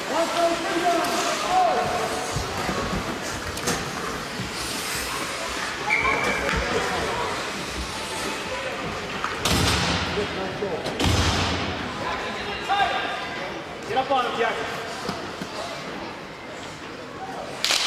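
Ice hockey skates scrape and hiss across ice in an echoing indoor rink.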